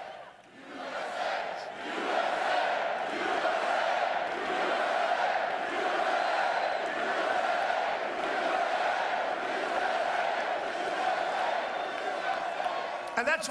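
A large crowd cheers and shouts loudly.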